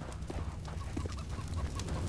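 Gunshots ring out nearby.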